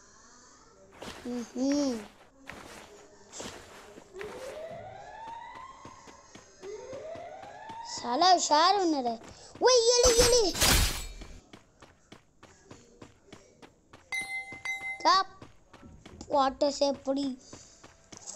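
A young boy talks and exclaims excitedly into a microphone.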